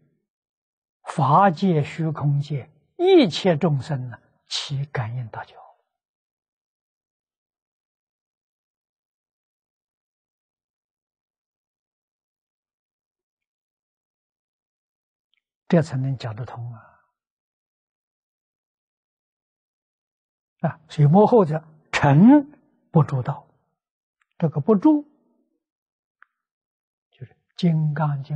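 An elderly man speaks calmly through a clip-on microphone, with long pauses.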